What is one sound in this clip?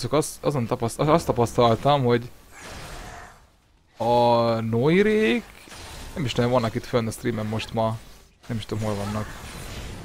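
Magic spells and weapon blows crackle and clash in a fantasy battle.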